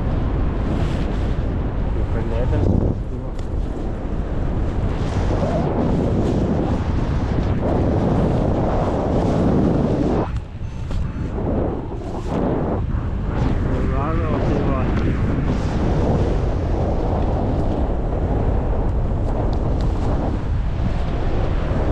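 Strong wind roars and buffets past a microphone high in the air.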